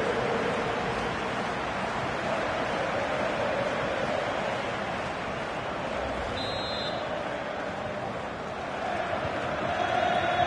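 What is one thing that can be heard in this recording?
A large stadium crowd cheers and chants loudly throughout.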